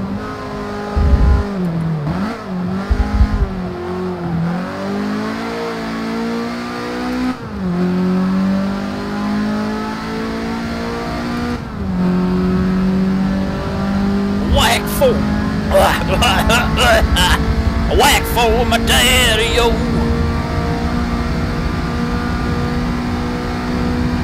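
A car engine roars, its pitch dropping and rising as the gears change.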